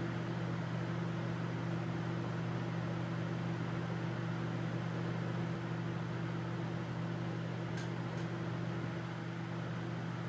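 A laminar flow hood's fan hums steadily.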